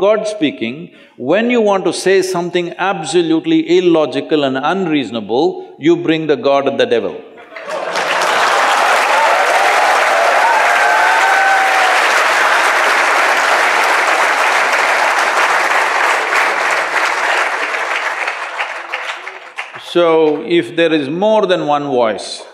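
An elderly man speaks calmly and expressively into a microphone.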